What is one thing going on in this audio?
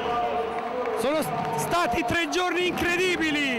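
A middle-aged man speaks loudly into a microphone in a large echoing hall.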